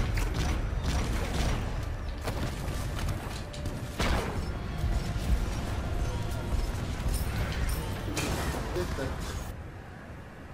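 Game combat effects clash and whoosh loudly.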